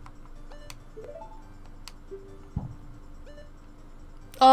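Short electronic menu blips sound.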